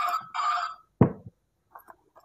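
A plastic toy knocks onto a hard surface.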